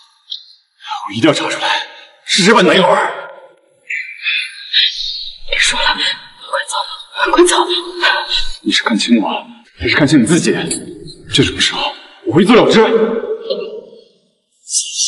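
A young man speaks urgently, close by.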